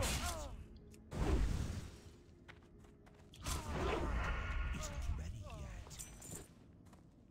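Sword blows strike and clash in a fight.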